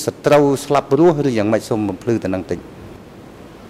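A man speaks clearly into a microphone, reading out.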